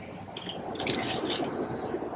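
Dry leaves rustle as a bird hops on the ground.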